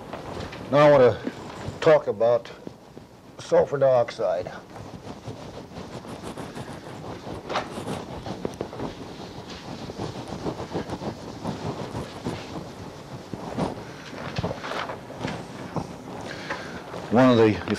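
An elderly man speaks in a lecturing voice.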